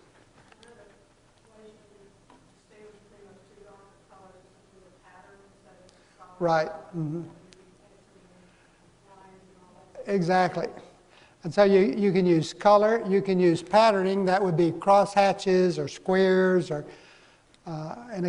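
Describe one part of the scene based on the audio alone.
A man speaks to an audience through a microphone in a large hall.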